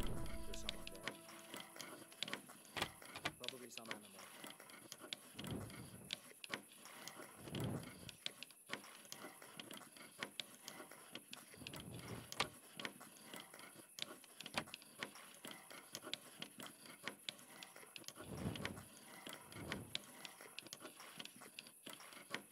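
A lockpick scrapes and clicks inside a metal lock.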